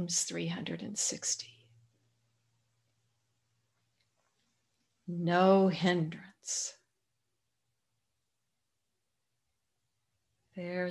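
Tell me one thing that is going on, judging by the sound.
An elderly woman speaks calmly over an online call, pausing between phrases.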